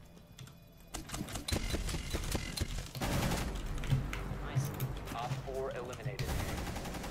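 Gunshots crack in quick bursts from a video game.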